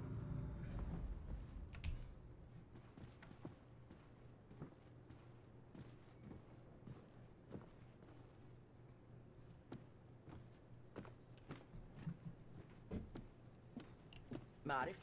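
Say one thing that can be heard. Footsteps thud on stairs and a wooden floor.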